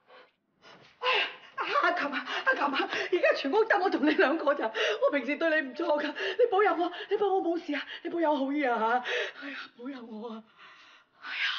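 A middle-aged woman wails and pleads tearfully.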